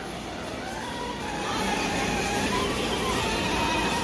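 A toy electric car's motor whirs as it drives.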